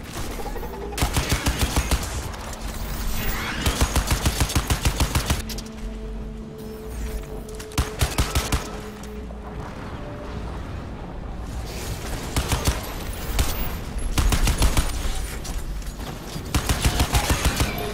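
Rapid machine-gun fire rattles in bursts.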